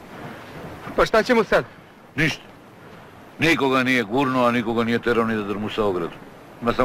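A man speaks loudly and anxiously nearby.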